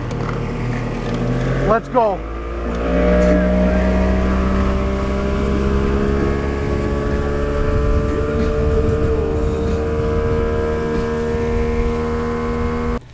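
A boat's outboard motor roars and revs up as the boat speeds up.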